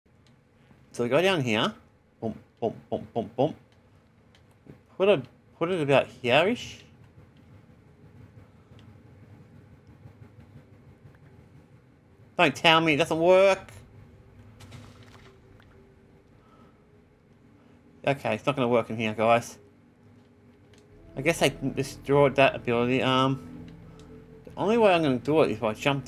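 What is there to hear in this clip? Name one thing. A man talks with animation, close to a microphone, in short bursts.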